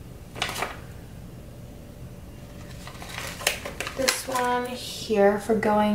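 Paper sticker sheets rustle as they are handled.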